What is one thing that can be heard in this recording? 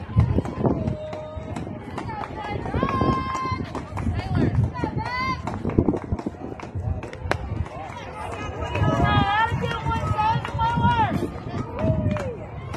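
Young women cheer and shout in sing-song calls nearby, outdoors.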